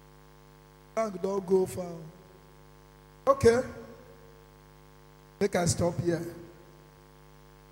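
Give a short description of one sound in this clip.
A man speaks through a microphone in short, forceful bursts, with echo.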